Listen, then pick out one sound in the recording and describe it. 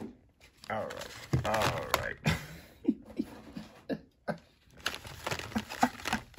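Plastic card packs crinkle and rustle as hands handle them.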